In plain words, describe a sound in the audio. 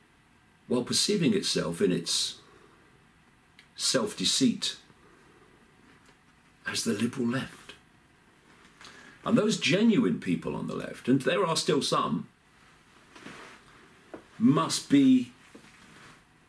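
An older man speaks calmly in short phrases close to the microphone.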